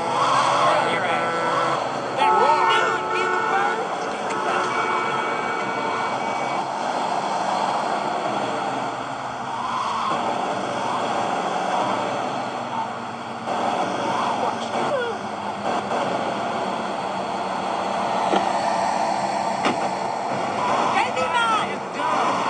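A car engine hums steadily through a small tablet speaker.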